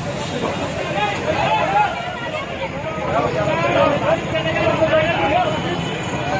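A crowd of men shouts and talks excitedly close by.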